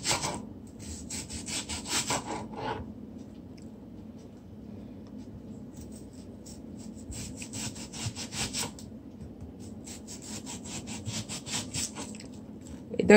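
A knife chops rapidly through spring onions on a cutting board.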